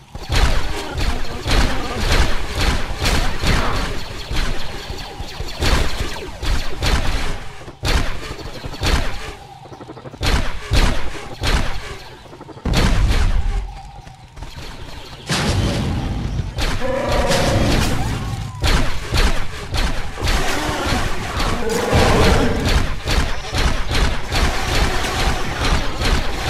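Rapid laser gunfire blasts in quick bursts.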